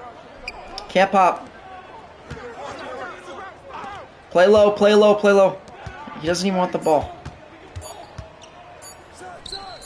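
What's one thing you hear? Sneakers squeak on a basketball court.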